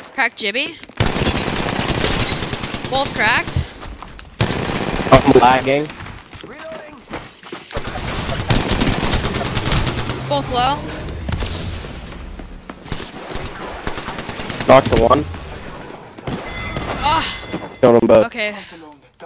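An automatic rifle fires.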